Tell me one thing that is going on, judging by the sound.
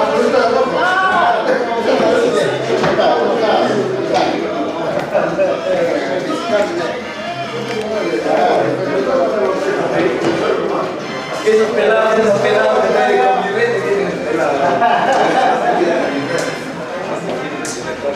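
Several men talk among themselves nearby.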